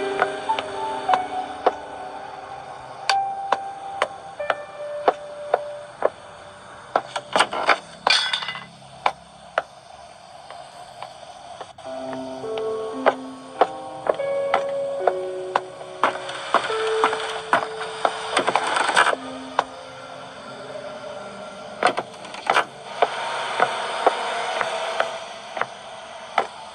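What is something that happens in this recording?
A slow, eerie melody plays from a tablet's small speaker.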